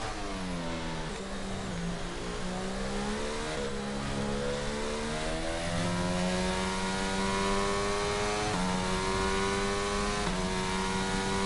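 A racing car engine screams, rising in pitch as it speeds up and dropping briefly at each gear change.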